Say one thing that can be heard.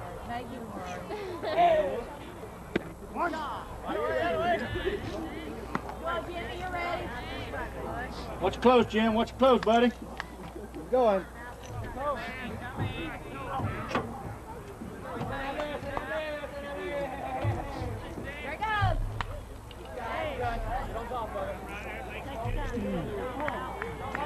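Men call out and chatter across an open ballfield.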